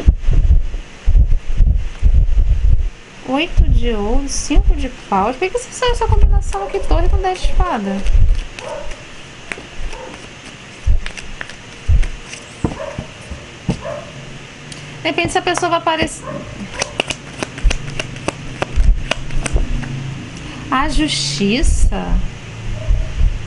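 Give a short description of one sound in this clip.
Playing cards are shuffled and softly slapped down.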